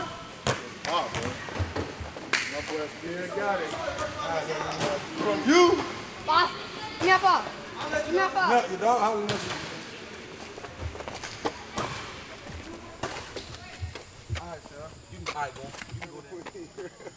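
Young men talk and laugh loudly nearby.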